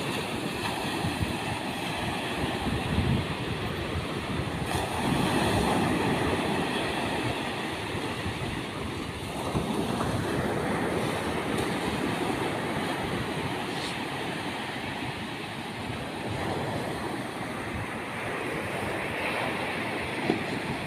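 Wind blows across the open shore.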